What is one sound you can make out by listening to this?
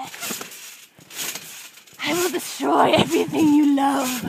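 Furry fabric brushes and rustles against the microphone.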